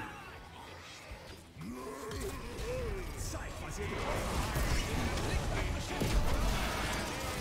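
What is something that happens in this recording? Magic blasts and weapon hits crackle and boom in a busy battle.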